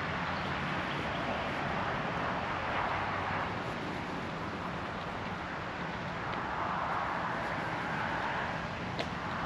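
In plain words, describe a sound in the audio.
Wind blows outdoors and rustles leaves in the bushes.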